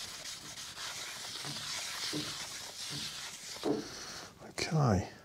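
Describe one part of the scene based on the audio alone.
A cloth rubs and wipes against a metal disc.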